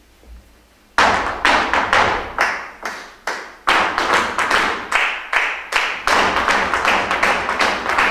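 A band plays lively music with drums and hand percussion, echoing in a large hall.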